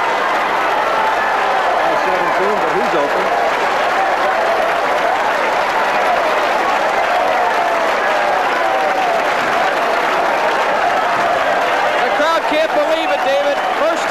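A large crowd cheers and claps loudly.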